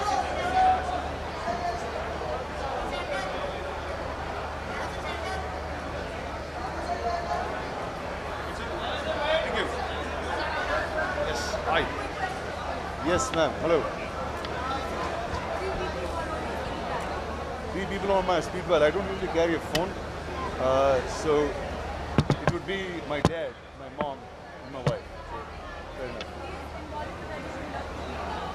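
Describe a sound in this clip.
A crowd chatters loudly in the background.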